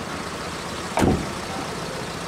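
A van door slams shut.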